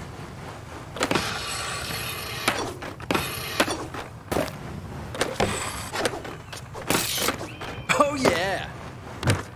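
A skateboard clacks sharply on landings.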